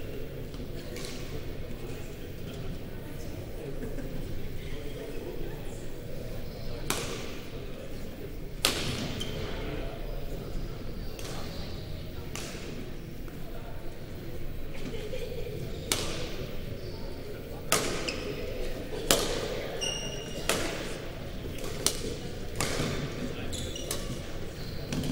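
Shuttlecocks are struck with rackets in sharp, irregular pops.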